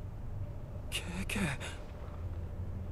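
A young man speaks quietly to himself.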